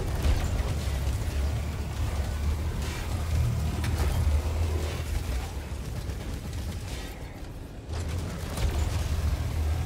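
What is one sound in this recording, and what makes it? A heavy weapon fires loud bursts of shots.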